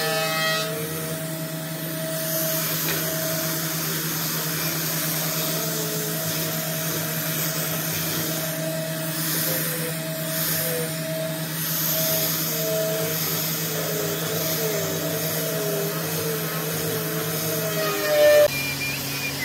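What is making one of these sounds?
A small power sander whirs steadily as it sands wood, then stops.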